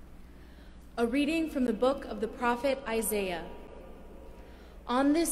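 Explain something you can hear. A young woman reads out calmly into a microphone in a large echoing hall.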